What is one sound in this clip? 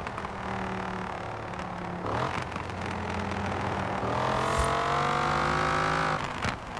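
A sports car engine roars at speed, climbing in pitch.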